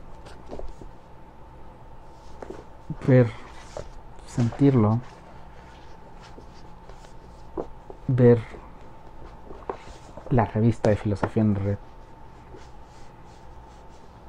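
Paper pages rustle as a magazine is leafed through.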